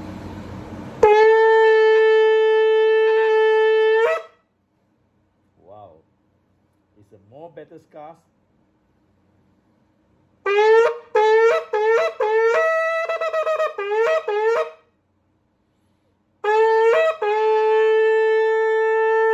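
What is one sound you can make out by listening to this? A man blows a horn in long, steady, loud notes.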